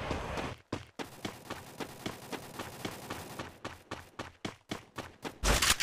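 Quick footsteps run over grass and paving.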